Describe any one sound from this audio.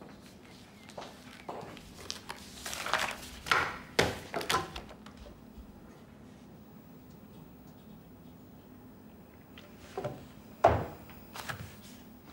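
Sheets of paper rustle and crinkle close by.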